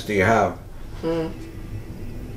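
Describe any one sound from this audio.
A woman speaks briefly and close to a microphone.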